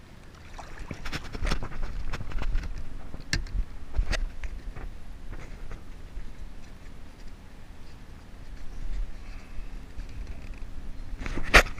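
A hand knocks and rummages inside a hard plastic compartment.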